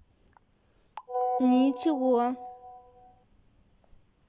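A short electronic tone plays as a message is sent.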